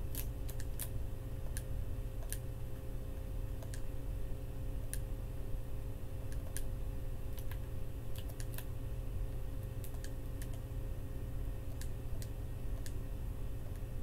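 Soft menu clicks tick as keys are picked one by one.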